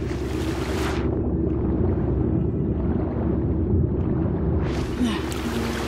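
Muffled, rumbling underwater sound swells around a diver.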